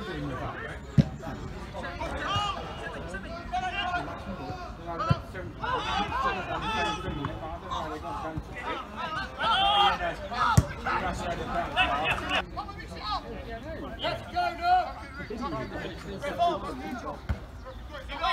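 A football is kicked with sharp thuds.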